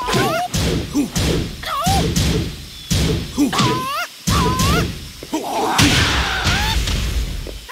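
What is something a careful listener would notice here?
Punches and kicks land with sharp, heavy thuds in quick bursts.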